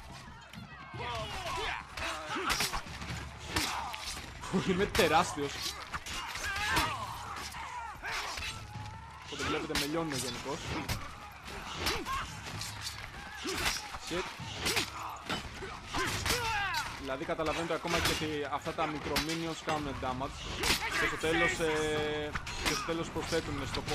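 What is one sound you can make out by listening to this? Many soldiers shout and grunt in combat.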